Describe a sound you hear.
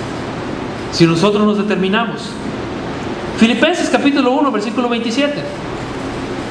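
A man speaks calmly into a microphone in a bare, echoing room.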